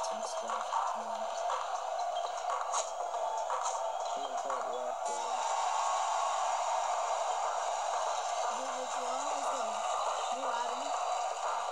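A crowd roars steadily in a basketball game heard through a small speaker.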